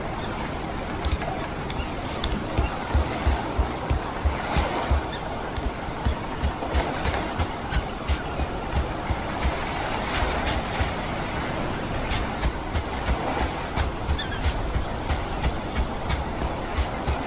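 Quick footsteps thud as a child runs over wooden planks and then across sand.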